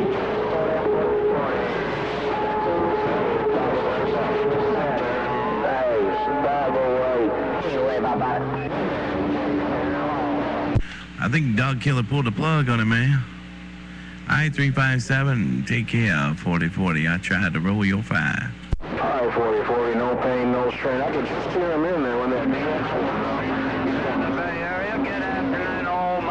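A radio receiver crackles and hisses with warbling signals.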